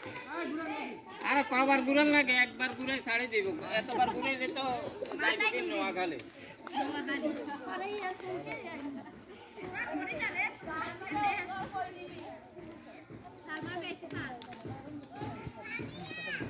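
Girls and adults talk and call out nearby.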